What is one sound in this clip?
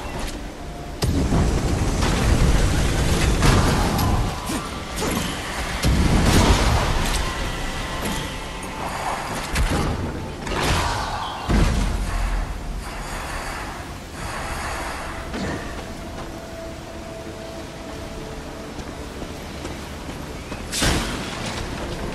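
Weapons clash and strike with sharp hits.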